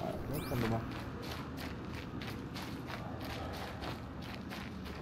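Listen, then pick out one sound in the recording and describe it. Quick footsteps run through undergrowth.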